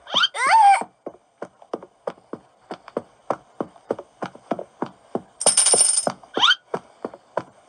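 Footsteps tap at a steady pace in a game on a tablet speaker.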